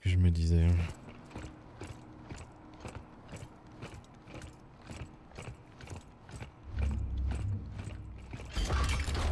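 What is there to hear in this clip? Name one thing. Heavy boots clank steadily on a metal floor.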